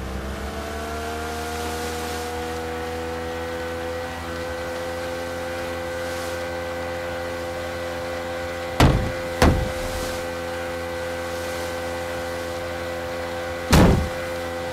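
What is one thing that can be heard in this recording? Water splashes and sprays against a speeding boat's hull.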